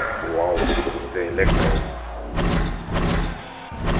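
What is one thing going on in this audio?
Electricity crackles and buzzes around a robot's fists.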